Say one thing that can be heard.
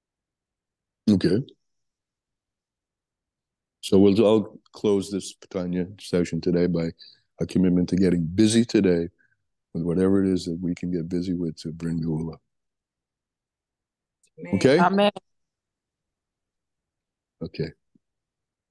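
An elderly man talks with animation through an online call, with pauses.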